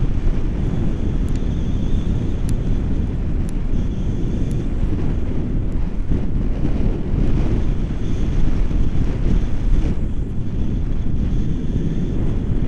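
Strong wind roars and buffets loudly against a microphone.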